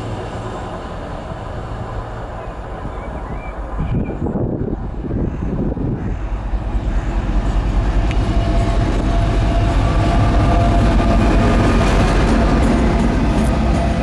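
A diesel locomotive approaches with a deep, growing engine rumble and passes close by.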